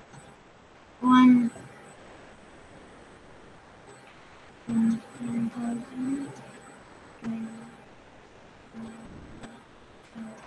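A young boy speaks briefly through an online call.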